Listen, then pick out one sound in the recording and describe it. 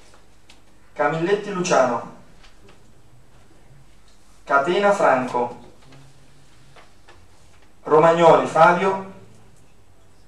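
A man speaks into a microphone in short phrases, with pauses between them.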